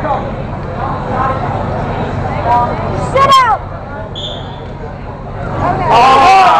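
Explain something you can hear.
A crowd of spectators chatters and shouts in an echoing gym.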